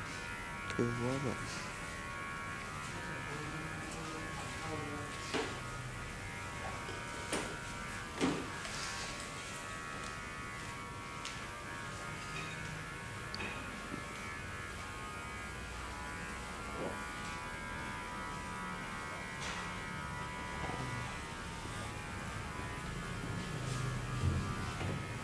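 Men and women talk in the distance in a busy room.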